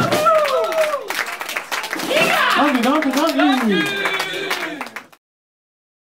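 A live band plays guitars and drums in a room.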